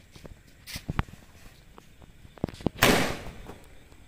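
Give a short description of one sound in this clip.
A firework fountain hisses and crackles.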